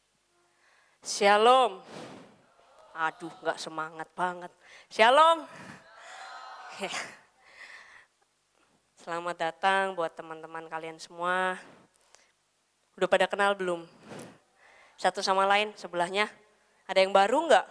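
A young woman speaks with animation through a microphone over loudspeakers.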